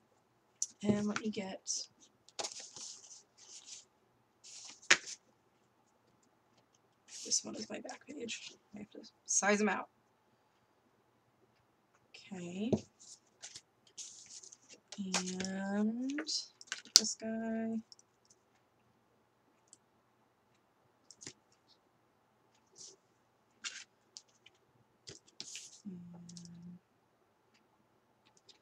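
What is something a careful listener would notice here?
Sheets of card rustle and slide against each other.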